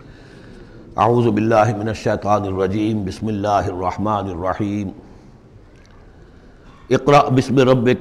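An elderly man recites in a slow, chanting voice close to a microphone.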